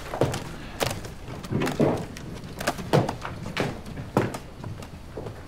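Laptops knock and clatter as they are set down on a table.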